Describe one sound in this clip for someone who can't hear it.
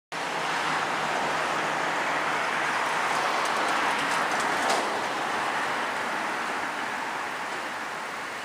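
Cars drive past on a nearby road, their tyres hissing.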